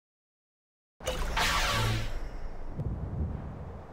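Fighting sound effects clash and whoosh.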